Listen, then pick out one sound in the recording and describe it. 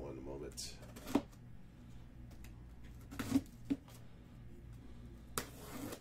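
A cardboard box scrapes and thumps on a table.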